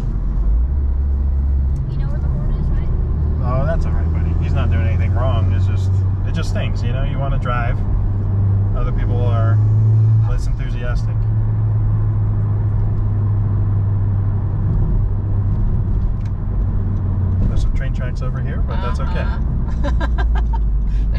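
A car engine hums low and steady as the car drives along a road.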